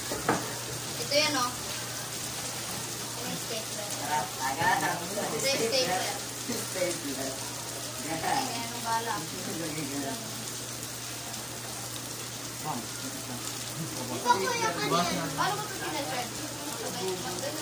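A teenage boy talks casually nearby.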